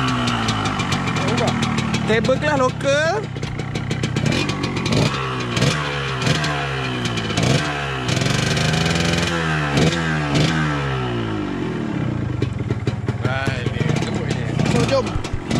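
A motorcycle engine runs close by, revving up and down again and again.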